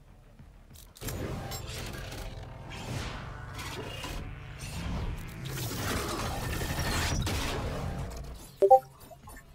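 A deep whooshing game effect swells and roars, then fades.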